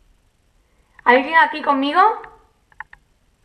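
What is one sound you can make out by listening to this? A young woman speaks in a strained voice close to a microphone.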